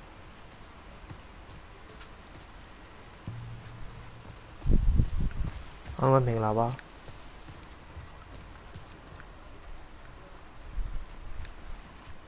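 Footsteps tread slowly on wet ground.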